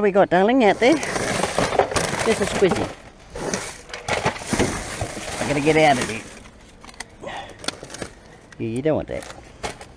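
Plastic bags and wrappers rustle and crinkle close by.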